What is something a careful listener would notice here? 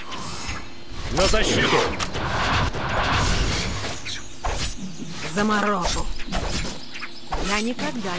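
Icy magic spells whoosh and crackle in a fantasy battle.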